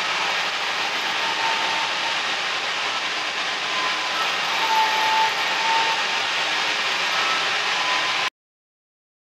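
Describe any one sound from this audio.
A floor grinding machine whirs and grinds steadily over concrete.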